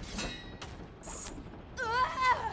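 A chain whip lashes out with a metallic rattle.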